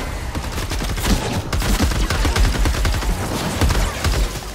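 Explosions burst and rumble in quick succession.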